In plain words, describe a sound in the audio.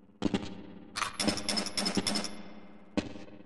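A pistol clicks metallically as it is handled.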